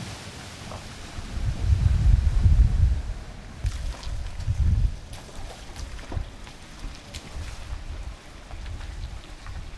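A car drives slowly through muddy puddles.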